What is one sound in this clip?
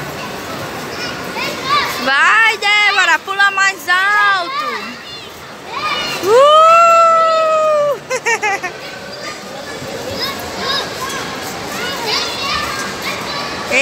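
Young girls sing and squeal playfully close by.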